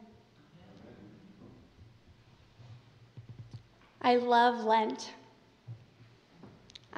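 A young woman speaks softly through a microphone in an echoing hall.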